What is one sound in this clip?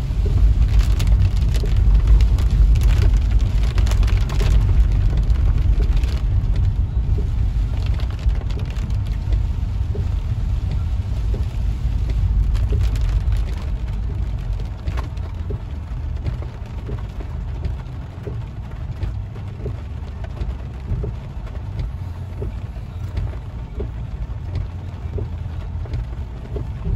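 Windshield wipers swish back and forth across the glass.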